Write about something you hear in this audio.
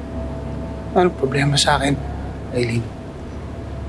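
A man speaks quietly and tensely.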